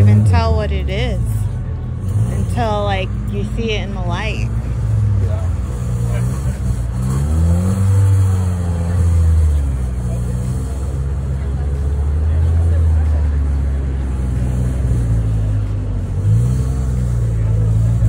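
A big car engine idles with a deep, lumpy rumble close by.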